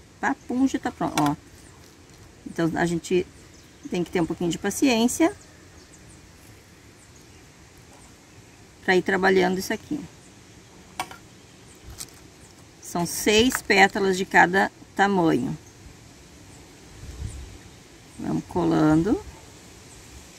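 A middle-aged woman speaks calmly and close by, in short phrases with pauses.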